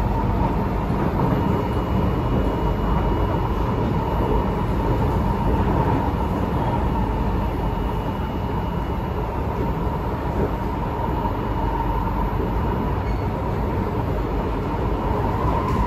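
An electric metro train rumbles along the track at speed, heard from inside the carriage.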